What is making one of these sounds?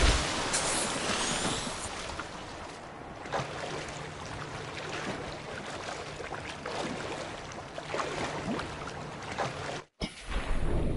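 Waves splash and lap at the water's surface.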